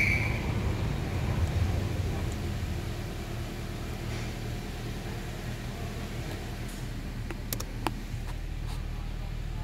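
A car engine hums with a low, steady rumble from inside the car.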